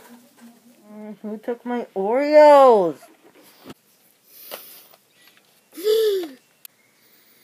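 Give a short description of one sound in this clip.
A boy cries out in a rising and falling voice close by.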